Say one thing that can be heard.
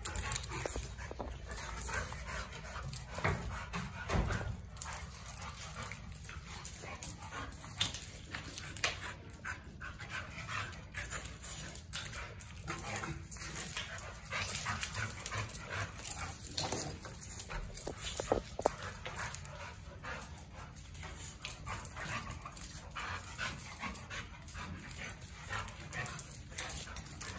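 Two dogs growl and snarl playfully while wrestling.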